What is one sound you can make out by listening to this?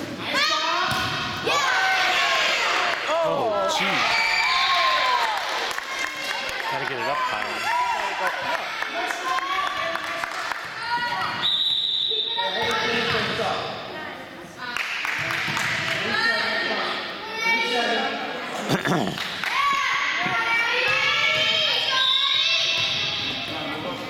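Young girls shout and cheer to each other in a large echoing hall.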